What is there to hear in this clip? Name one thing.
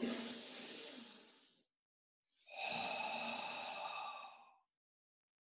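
A young man breathes out slowly and audibly.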